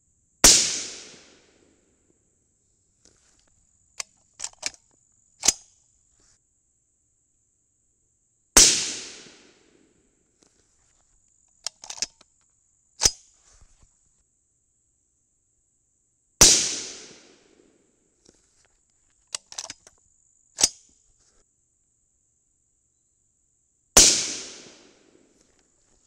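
A rifle fires loud single shots outdoors, each echoing briefly.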